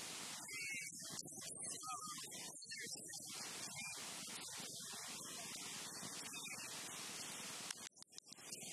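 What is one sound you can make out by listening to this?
An elderly woman reads aloud calmly into a microphone.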